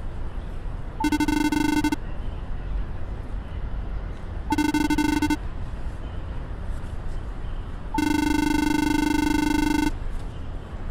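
A rapid electronic beeping chatters in short bursts.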